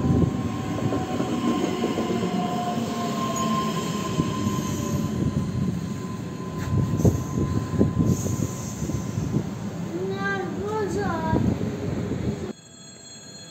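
An electric train rolls past with a loud rumble and clatter of wheels.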